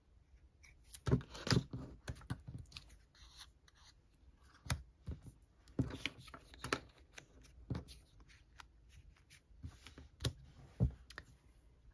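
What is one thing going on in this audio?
Paper pieces rustle and tap on a tabletop.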